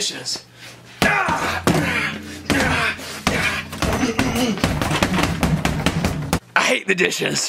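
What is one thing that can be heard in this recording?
Boxing gloves thump repeatedly against a punching bag.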